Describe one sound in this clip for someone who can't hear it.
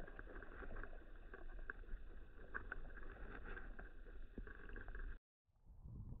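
Muffled underwater noise rumbles and crackles.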